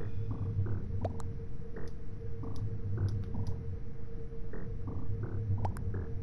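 Soft clicks sound as game buttons are pressed.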